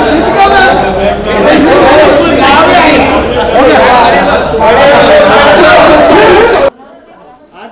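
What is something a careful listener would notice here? Several men talk and call out loudly close by, in a busy crowd.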